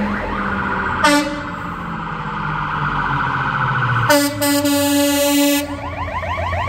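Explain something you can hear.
A fire engine blasts its air horn.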